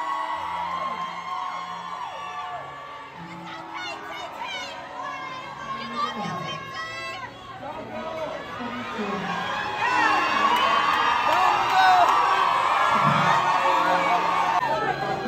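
A woman speaks into a microphone through loud speakers in a large echoing hall.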